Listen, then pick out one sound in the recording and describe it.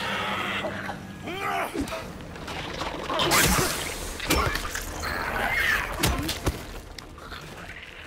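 A creature shrieks and groans nearby.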